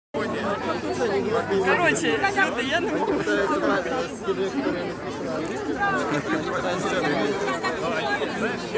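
A crowd of people murmurs and talks close by outdoors.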